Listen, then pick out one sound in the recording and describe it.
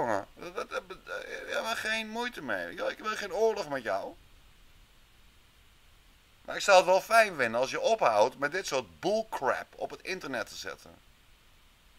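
A man talks calmly into a microphone, in short bursts with pauses.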